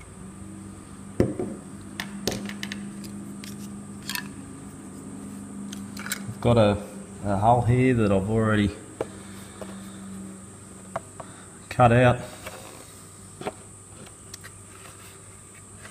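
Hands handle plastic parts, with light clicks and taps.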